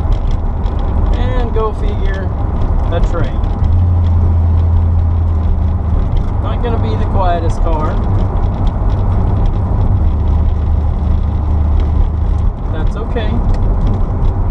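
A man talks inside the car.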